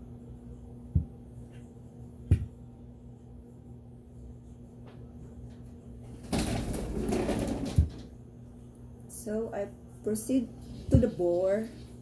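A small plastic device knocks down onto a table.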